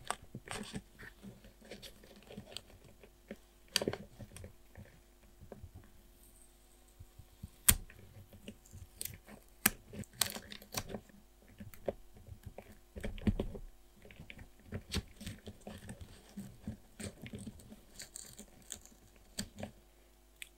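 A metal tool taps and scrapes against paper.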